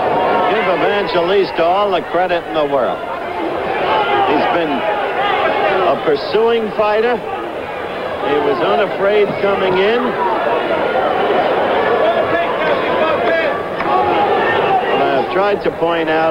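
Boxing gloves thud against a body.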